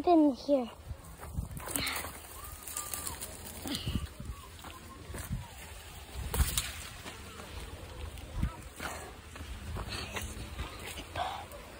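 Footsteps crunch on dry dirt and leaves.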